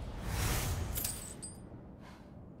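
A bright chime rings as items are picked up.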